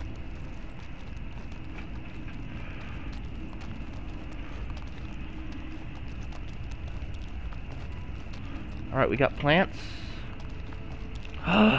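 Footsteps crunch on loose gravel.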